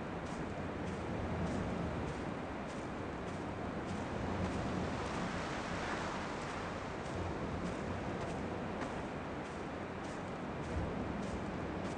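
Footsteps crunch at an even pace on rough ground.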